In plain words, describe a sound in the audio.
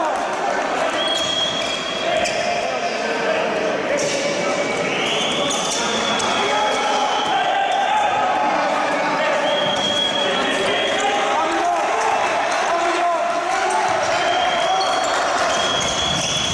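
Sneakers squeak on a court floor.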